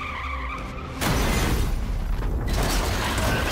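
A car crashes with a loud metal crunch.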